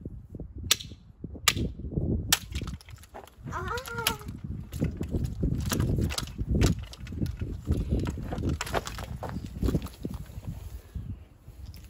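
A metal rake scrapes and clatters through dry soil and stones.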